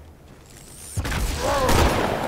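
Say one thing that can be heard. A plasma grenade bursts with a loud crackling blast.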